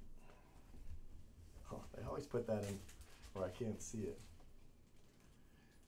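Plastic wrapping crinkles as hands handle it.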